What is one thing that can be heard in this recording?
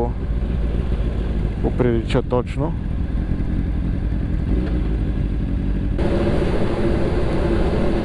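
A motorcycle engine hums and revs steadily.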